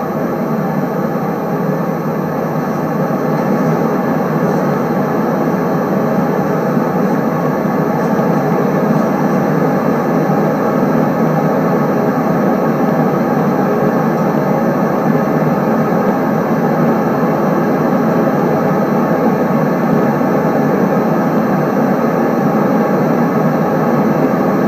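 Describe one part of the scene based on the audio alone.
A train rumbles steadily along the tracks, slowly picking up speed.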